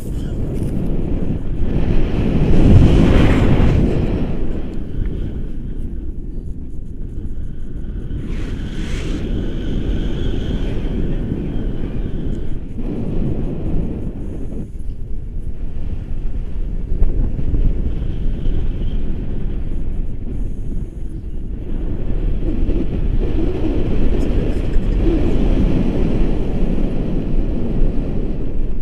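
Wind roars steadily across a microphone outdoors.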